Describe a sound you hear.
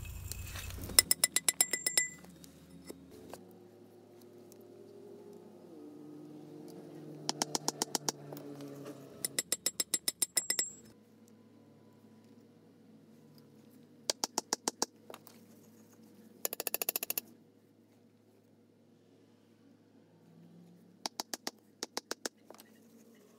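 A hammer pounds on a wooden block in quick bursts of blows.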